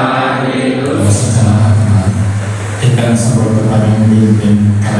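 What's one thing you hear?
A younger man speaks through a microphone and loudspeaker.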